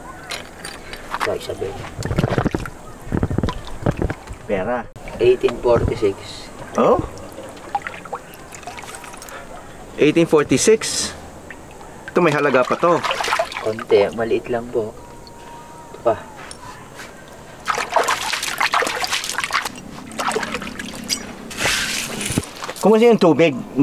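An older man talks nearby.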